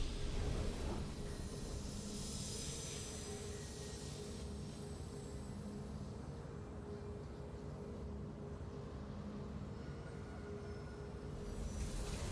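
A soft triumphant tune plays steadily.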